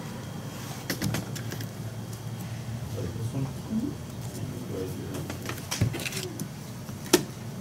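Cards are placed with soft taps on a table.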